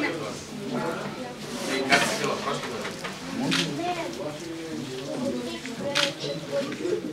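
Young children chatter and talk over one another close by.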